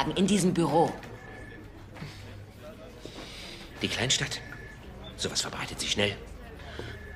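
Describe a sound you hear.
A middle-aged man speaks calmly.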